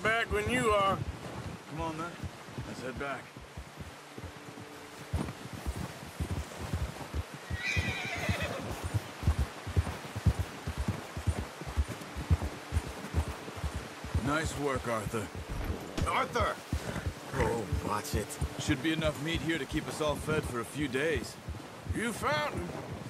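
Horse hooves thud softly through deep snow at a steady walk.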